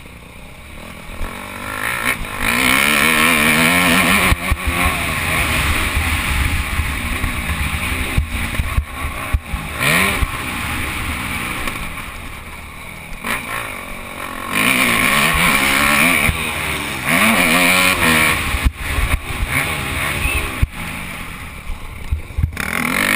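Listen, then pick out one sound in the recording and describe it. A dirt bike engine revs hard, rising and falling as the rider shifts.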